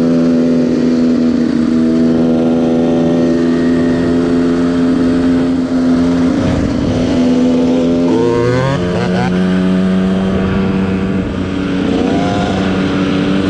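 A dirt bike engine hums steadily up close.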